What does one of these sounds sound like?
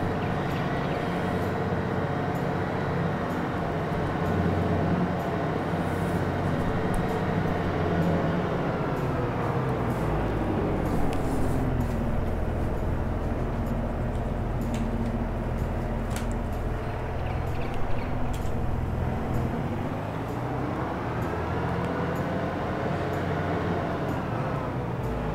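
A tractor engine drones steadily, its pitch rising and falling as it speeds up and slows down.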